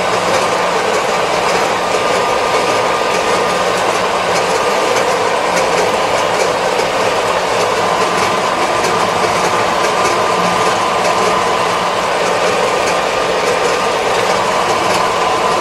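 Tyres roll on a paved road.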